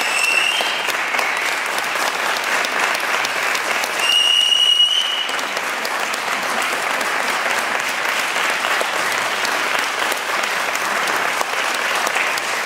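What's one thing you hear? An audience applauds in a reverberant hall.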